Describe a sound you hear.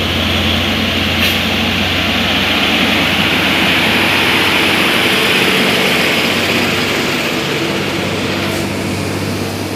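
A heavy truck's diesel engine rumbles loudly as it passes close by.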